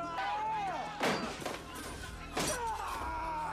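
Heavy blows land with sharp thuds.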